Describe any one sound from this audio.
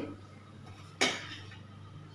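A metal spatula clinks against a plate.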